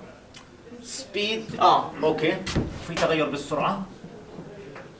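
A man speaks calmly, lecturing.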